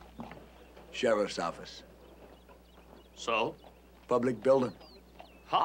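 A man speaks casually nearby.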